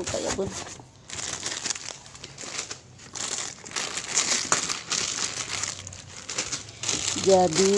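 Plastic snack wrappers crinkle and rustle as they are handled.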